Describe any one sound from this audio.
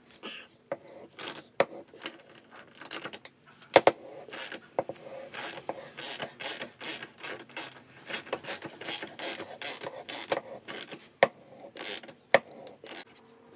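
A ratchet handle clicks as a tap is turned in metal.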